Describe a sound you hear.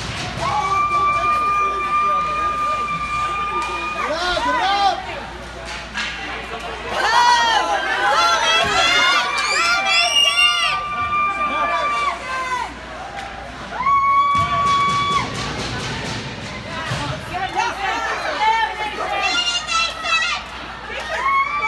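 Skates scrape and glide across ice in a large echoing rink.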